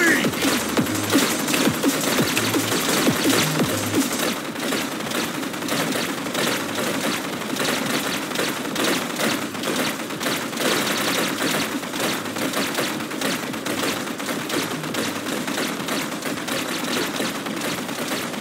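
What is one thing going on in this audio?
Small guns fire rapid popping shots.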